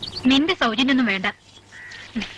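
An elderly woman speaks loudly nearby.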